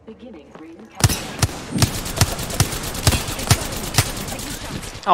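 A gun fires a rapid series of loud shots.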